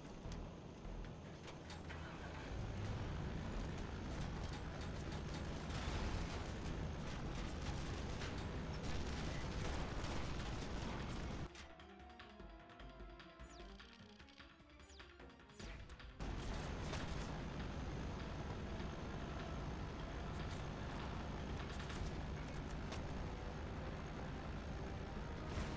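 An armoured vehicle's engine rumbles as it drives over rough ground.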